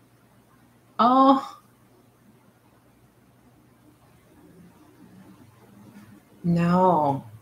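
A middle-aged woman speaks close to a microphone, in short calm bursts.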